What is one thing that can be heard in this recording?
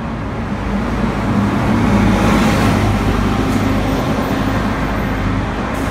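A bus engine hums and roars as the bus drives by close.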